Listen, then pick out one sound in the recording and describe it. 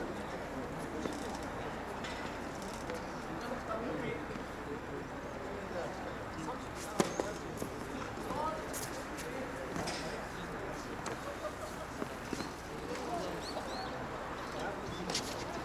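A tennis ball is struck by a racket with sharp pops.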